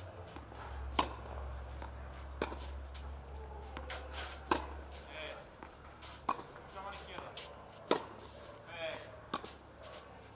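A tennis racket hits a ball with sharp pops.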